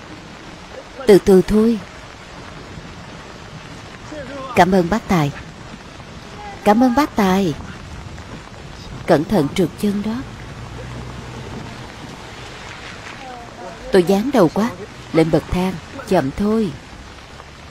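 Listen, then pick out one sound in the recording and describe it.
A young woman speaks in short, shaky phrases.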